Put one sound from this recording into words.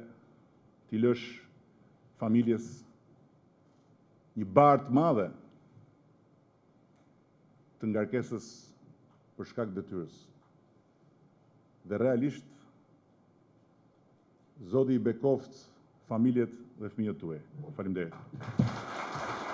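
A middle-aged man speaks slowly and forcefully into a microphone, with pauses between phrases.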